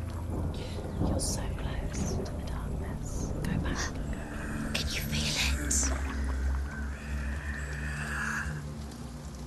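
A paddle dips and splashes through water.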